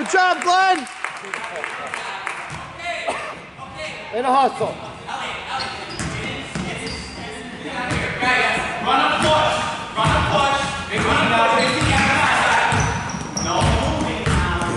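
Children and adults shout and talk in a large echoing gym.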